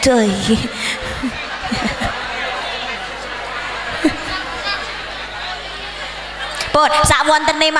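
A crowd laughs.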